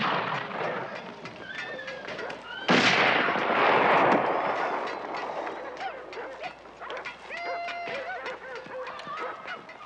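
Men shout and yell excitedly nearby.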